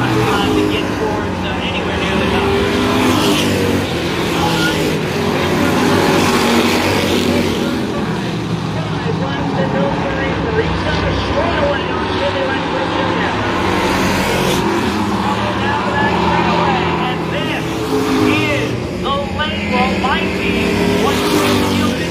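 Race car engines roar and whine loudly as the cars speed around the track.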